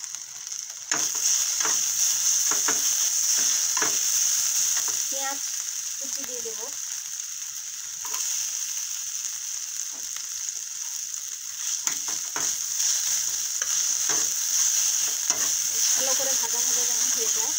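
A metal spatula scrapes and taps against an iron pan.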